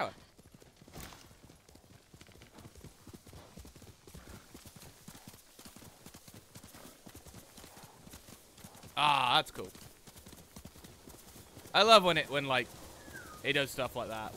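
A horse gallops through tall grass, its hooves thudding softly.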